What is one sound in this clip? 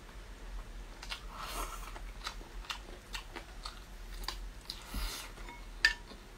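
Crispy food crunches as a woman bites into it.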